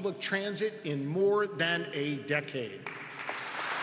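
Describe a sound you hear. A man speaks calmly and formally into a microphone.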